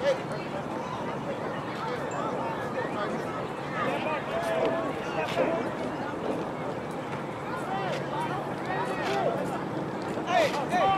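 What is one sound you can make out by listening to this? A crowd of spectators cheers and shouts from the stands outdoors.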